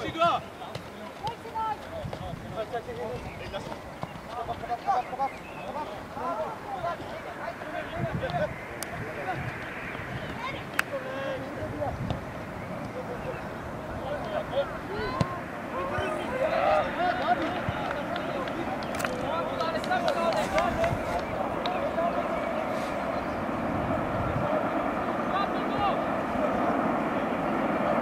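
Teenage boys shout to each other across an outdoor football pitch.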